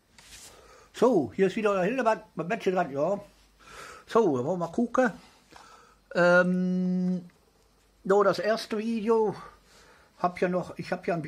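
A middle-aged man talks close to a phone's microphone with animation.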